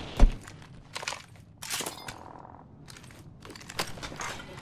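A gun clicks and rattles as it is handled.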